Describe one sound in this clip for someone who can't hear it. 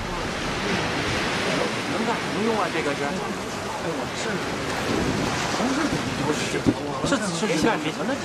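Water laps against a boat's side.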